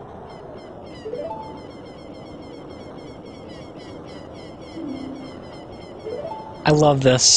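A short rising electronic chime sounds twice.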